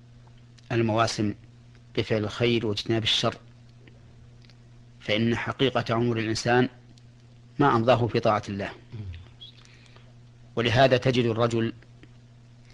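A man recites in short phrases with pauses, close by.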